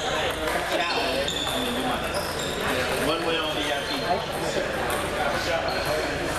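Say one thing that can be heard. Table tennis balls click against paddles and tables in an echoing hall.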